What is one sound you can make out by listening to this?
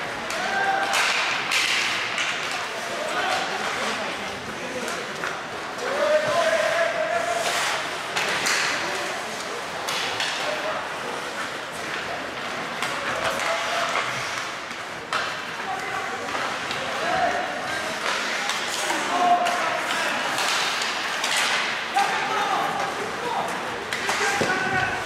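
Players shout to each other across the rink.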